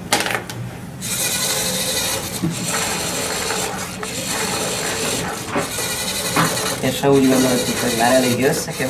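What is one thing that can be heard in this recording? A toy robot's small motors whir as it walks on a table.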